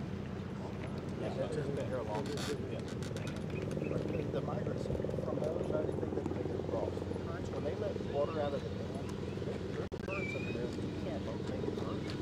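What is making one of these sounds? Several men talk quietly outdoors nearby.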